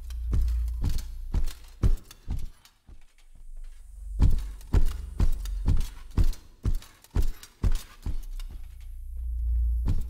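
Heavy footsteps thud at a steady walking pace.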